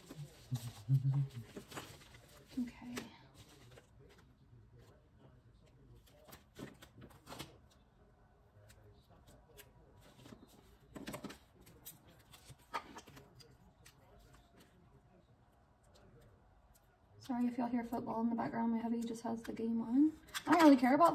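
Paper rustles and taps softly.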